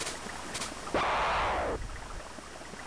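A game sound effect swooshes briefly.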